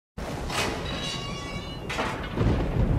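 An iron gate creaks as it swings open.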